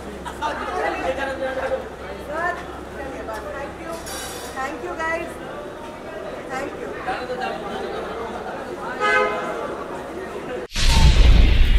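Several men shout and call out close by, over one another.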